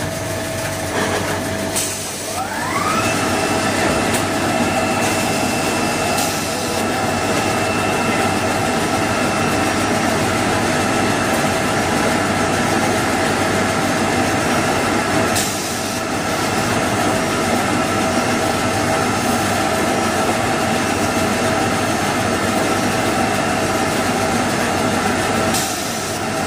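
A machine hums and whirs steadily, winding up to speed at the start.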